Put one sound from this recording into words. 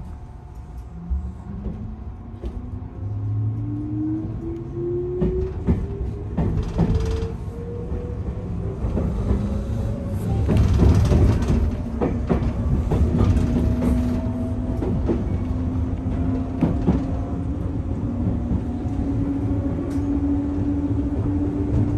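A train's electric motor whines, rising in pitch as it picks up speed.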